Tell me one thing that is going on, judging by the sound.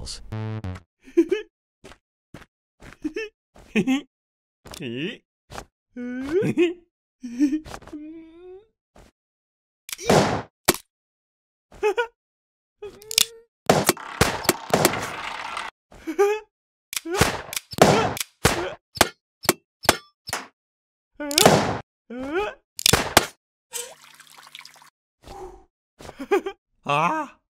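A young woman talks with animation, close by.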